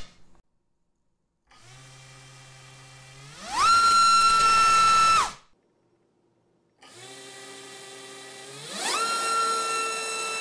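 Buttons click on a test device.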